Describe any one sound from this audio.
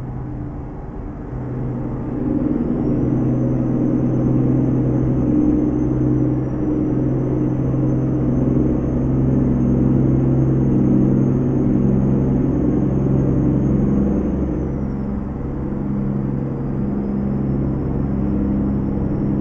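A heavy truck engine drones steadily, rising and falling in pitch.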